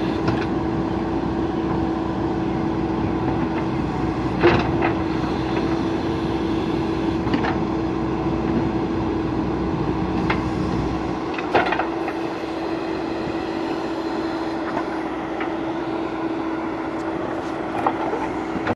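A backhoe engine hums steadily.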